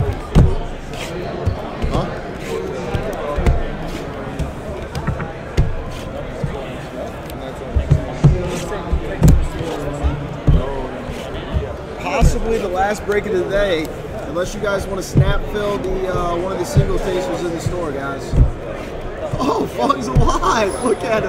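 Cardboard boxes knock and slide against each other.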